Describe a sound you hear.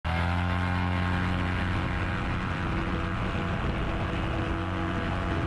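A small aircraft engine drones loudly and steadily.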